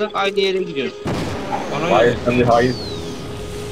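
A weapon fires a crackling electric beam.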